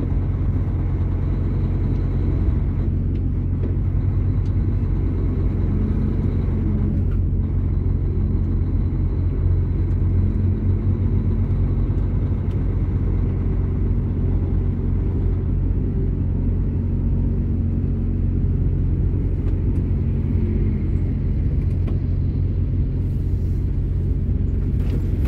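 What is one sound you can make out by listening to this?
A vehicle's engine drones low and steady as it drives.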